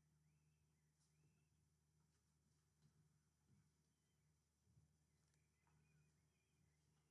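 A man speaks faintly through a loudspeaker at a distance outdoors.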